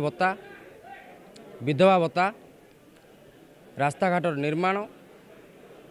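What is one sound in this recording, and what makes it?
A crowd of men shout a slogan together in loud bursts.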